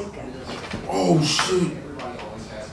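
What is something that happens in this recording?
A man's back cracks sharply.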